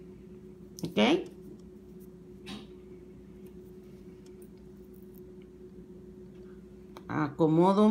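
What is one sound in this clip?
Small glass beads click softly between fingers.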